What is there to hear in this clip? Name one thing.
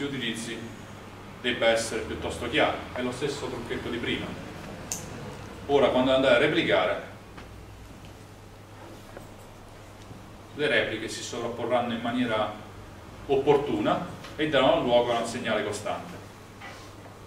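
A young man speaks calmly to a room, with some echo.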